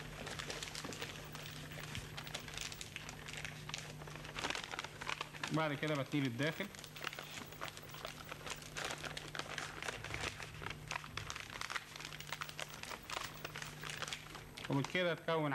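Paper crinkles and rustles as hands fold it.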